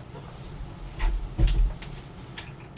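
A wooden closet door thumps shut.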